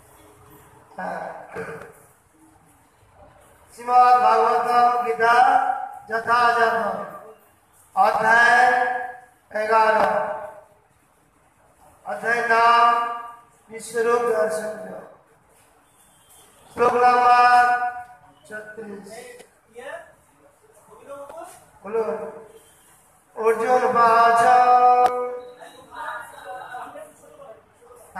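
A man chants nearby in loud, drawn-out phrases with short pauses between them.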